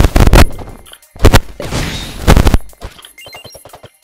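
A game explosion booms.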